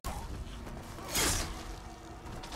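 A blade whooshes through the air in a swift slash.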